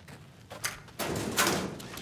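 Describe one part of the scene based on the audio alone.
A metal locker door creaks open.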